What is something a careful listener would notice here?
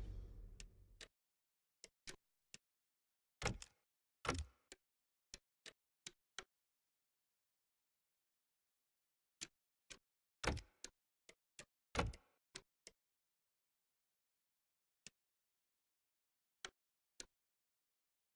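Soft menu clicks and chimes sound now and then.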